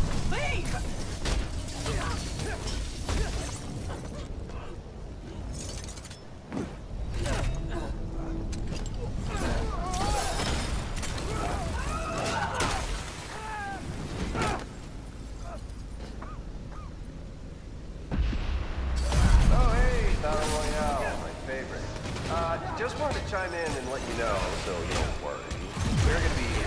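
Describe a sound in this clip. Blows land with heavy thuds in a fight.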